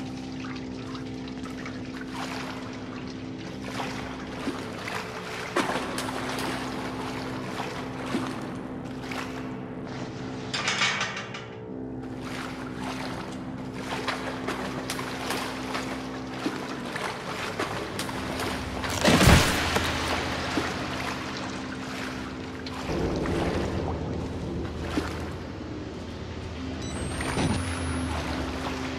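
Footsteps slosh through shallow water.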